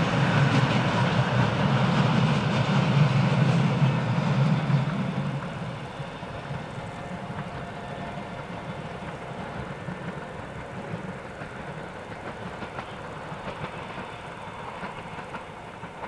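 A train rumbles along the tracks, loud at first and then fading into the distance.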